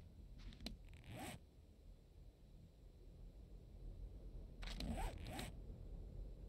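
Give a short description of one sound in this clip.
A soft click sounds as a menu opens.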